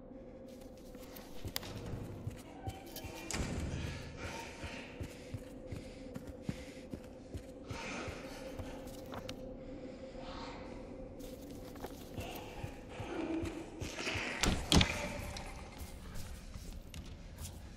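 Footsteps thud and scrape on a hard floor.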